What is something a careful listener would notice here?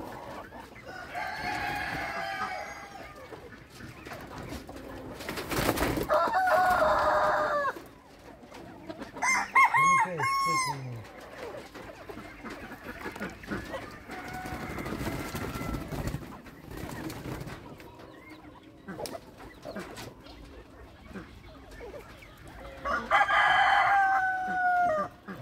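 Small birds call out now and then with short, harsh cries close by.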